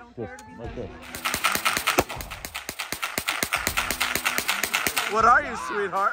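A gun fires in a rapid burst close by.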